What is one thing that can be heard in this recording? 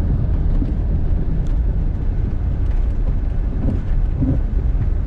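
Tyres crunch over packed snow.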